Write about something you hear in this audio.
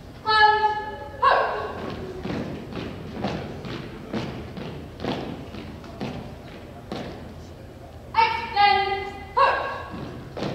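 A man shouts drill commands loudly in a large echoing hall.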